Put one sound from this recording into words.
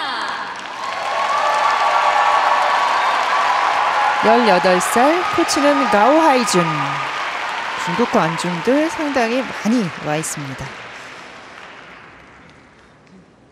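A crowd applauds loudly in a large echoing hall, then slowly fades.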